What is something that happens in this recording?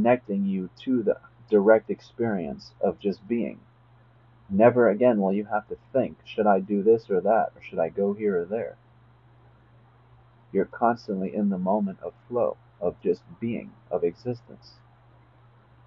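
A young man speaks calmly and close to a phone microphone, with pauses.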